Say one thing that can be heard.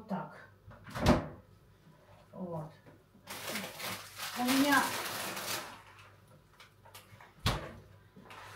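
A fridge door opens and shuts.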